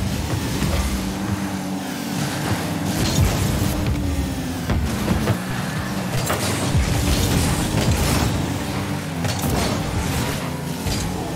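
A game car's engine hums and roars with boost.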